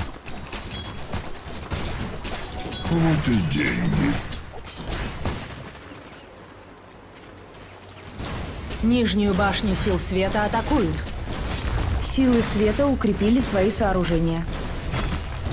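Game sound effects of blows and magic spells crackle and thud during a fight.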